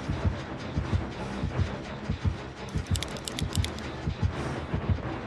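Heavy footsteps thud at a steady walking pace.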